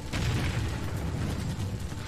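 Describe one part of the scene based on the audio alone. A small explosion booms.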